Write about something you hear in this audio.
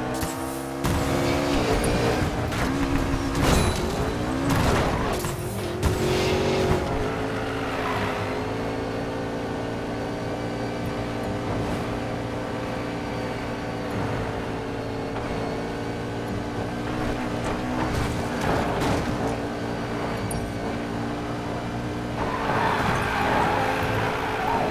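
A sports car engine roars steadily at high revs.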